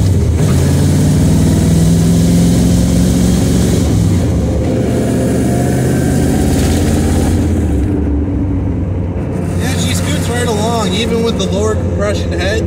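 Tyres roll along the road.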